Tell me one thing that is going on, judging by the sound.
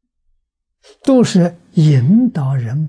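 An elderly man speaks calmly and warmly into a microphone.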